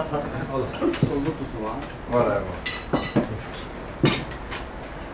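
Plates and cutlery clink on a table.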